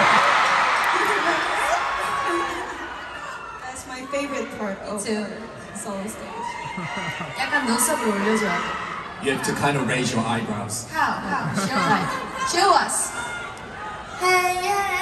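A young woman talks through a microphone over loudspeakers in a large echoing hall.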